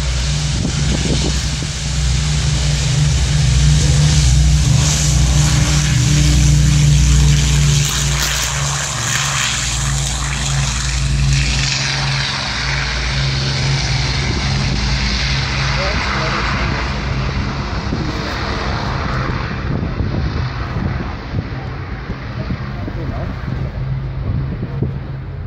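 A propeller plane's engines roar loudly as it races down a runway and slowly fades into the distance.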